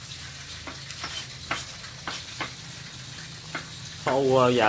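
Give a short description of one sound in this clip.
A knife chops on a cutting board with light, sharp taps.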